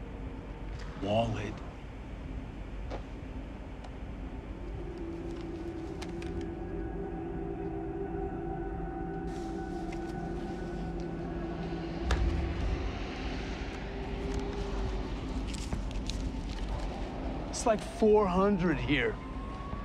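An elderly man speaks calmly and quietly, close by.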